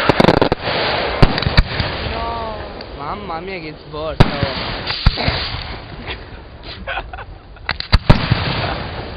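Fireworks burst with loud booms and sharp cracks.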